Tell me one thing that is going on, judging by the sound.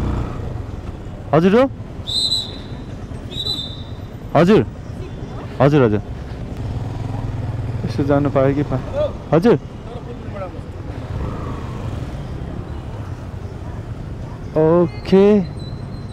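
A motorcycle engine idles with a low steady rumble.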